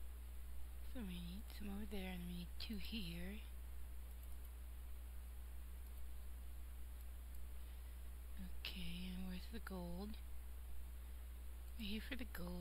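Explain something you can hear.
A woman speaks briefly and calmly, close to a microphone.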